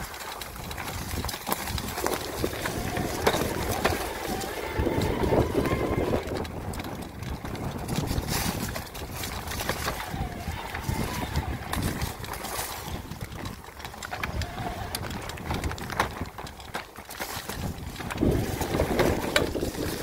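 Mountain bike tyres roll and crunch over dry fallen leaves.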